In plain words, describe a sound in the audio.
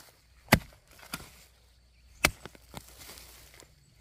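Loose soil crumbles and scatters.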